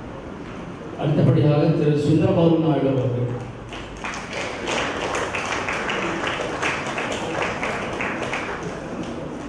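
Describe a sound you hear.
A man speaks loudly through a microphone.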